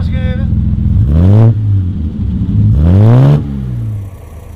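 A car engine revs loudly twice.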